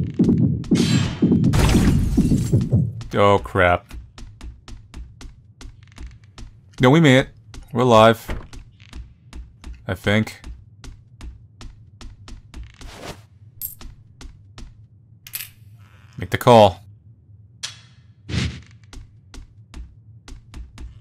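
Footsteps tap quickly and steadily on a wooden floor.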